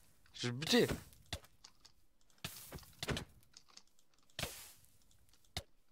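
Flames crackle and hiss in short bursts.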